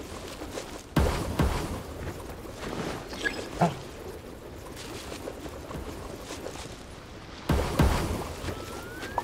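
Magical blasts burst with a sudden whoosh.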